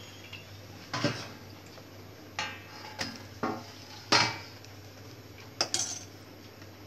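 A metal spatula knocks against a pan.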